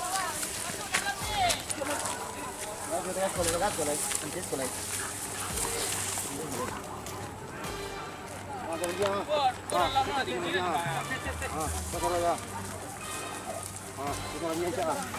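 Men talk and call out to each other outdoors.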